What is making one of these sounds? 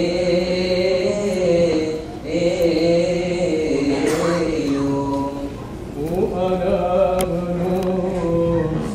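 A group of men chant together in a slow, steady melody in a large echoing hall.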